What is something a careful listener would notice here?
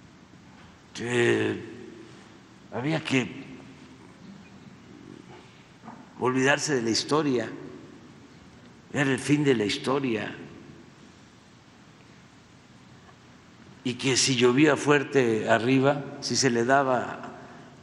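An elderly man speaks slowly into a microphone, in bursts with long pauses, in a large echoing hall.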